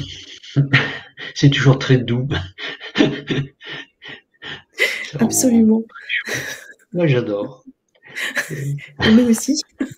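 A man laughs over an online call.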